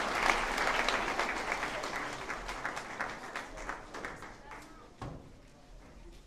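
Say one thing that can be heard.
An audience applauds in a large echoing hall, and the clapping dies away.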